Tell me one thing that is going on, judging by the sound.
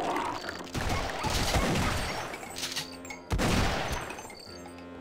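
A shotgun fires several loud blasts.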